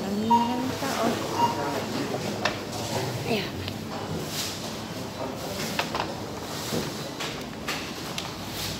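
Plastic shopping baskets clatter and knock together.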